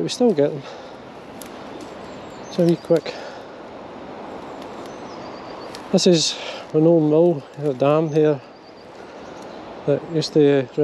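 A river flows gently.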